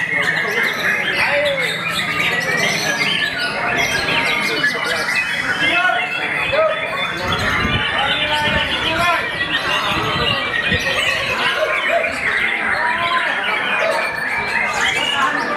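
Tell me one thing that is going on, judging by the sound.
A songbird sings loud, rapid, varied chirping and whistling phrases.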